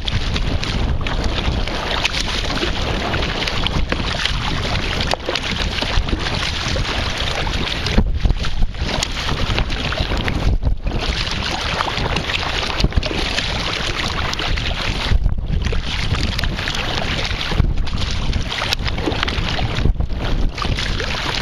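Water laps and splashes against a kayak.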